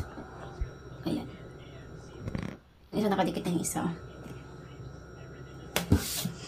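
A stiff sheet of card flaps and rustles close by.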